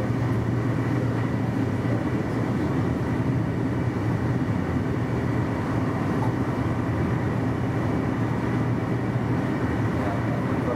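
A train's engine hums with a low drone.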